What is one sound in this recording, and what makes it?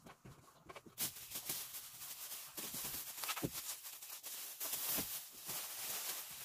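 Thin plastic sheeting crinkles and rustles as it is unrolled and shaken out.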